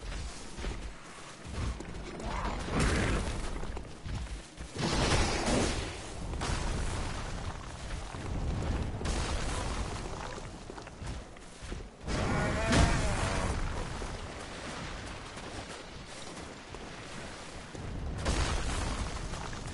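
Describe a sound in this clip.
A large beast snarls and roars close by.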